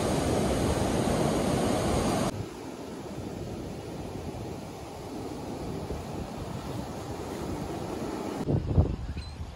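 Ocean waves break and wash up on a sandy beach.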